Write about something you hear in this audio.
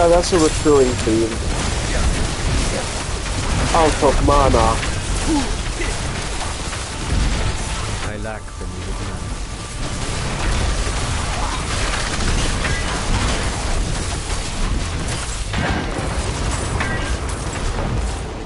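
Magic blasts boom in heavy bursts.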